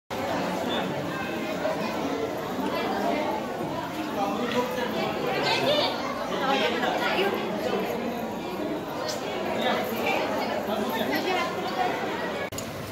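A man talks with the visitors nearby.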